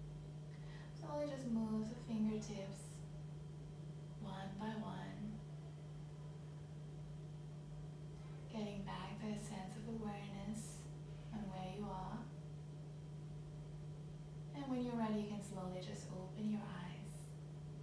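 A young woman speaks softly and calmly, pausing between short phrases.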